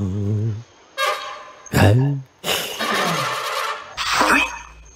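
A toy trumpet blares loudly.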